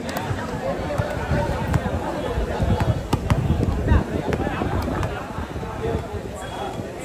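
Several young men talk over one another in a noisy crowd outdoors.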